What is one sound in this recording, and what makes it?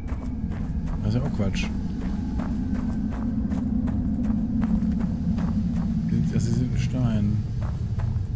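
A man speaks quietly into a close microphone.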